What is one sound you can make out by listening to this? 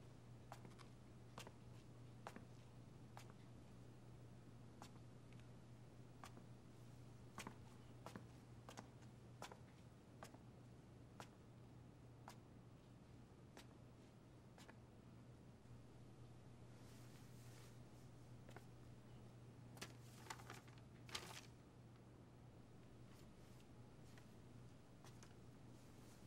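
Footsteps tap slowly and evenly on a hard floor.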